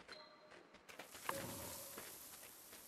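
A fox pounces and lands with a thump in the snow.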